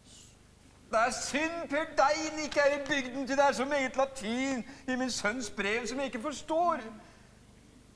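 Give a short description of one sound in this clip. A man sings loudly.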